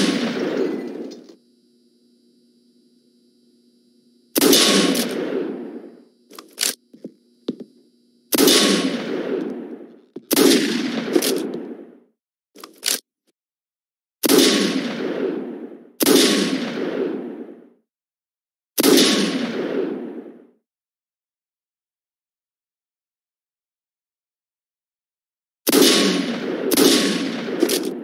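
Gunshots ring out in loud single blasts that echo away.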